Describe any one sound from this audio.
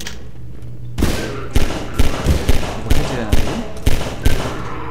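A pistol fires repeated sharp shots that echo.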